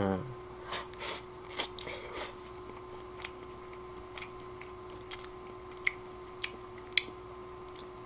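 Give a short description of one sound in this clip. Chopsticks click lightly against a bowl.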